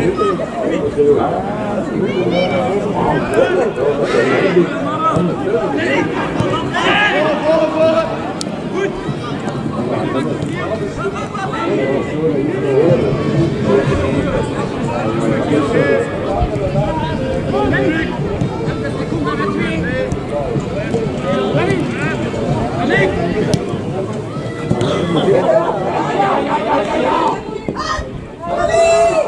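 Young men shout and call to each other across an outdoor field.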